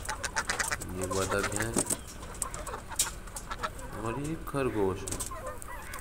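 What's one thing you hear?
Ducks quack loudly close by.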